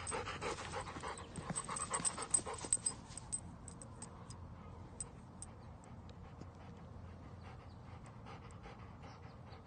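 A dog pants quickly and steadily.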